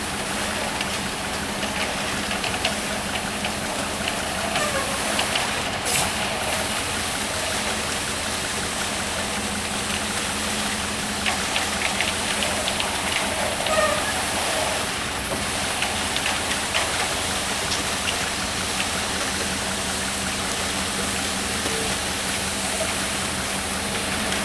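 Rakes scrape through wet concrete.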